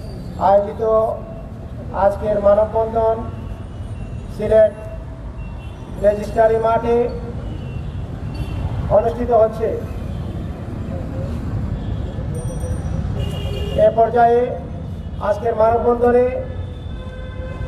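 A man speaks loudly through a microphone in short, emphatic bursts with pauses between them.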